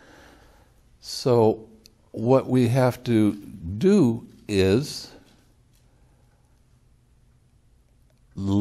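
An elderly man speaks calmly and thoughtfully into a clip-on microphone, with long pauses.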